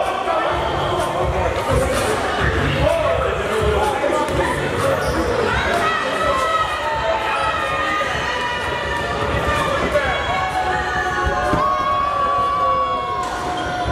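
A crowd of people chatters and calls out in a large echoing gym.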